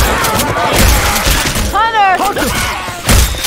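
A zombie snarls and growls close by.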